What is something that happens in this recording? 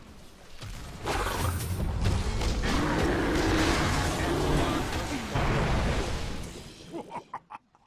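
Magic blasts and weapon hits crash loudly in a video game battle.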